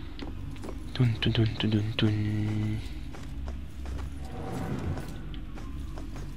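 A young man talks with animation, close to a headset microphone.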